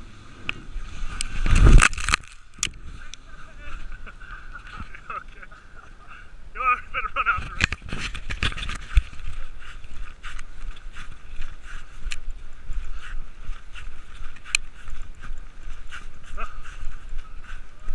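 Wind rushes past as a sled speeds downhill.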